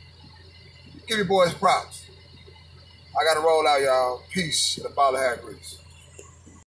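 A man speaks calmly and close up, in short bursts with pauses.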